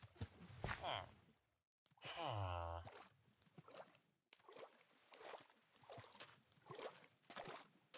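Water splashes as someone swims through it.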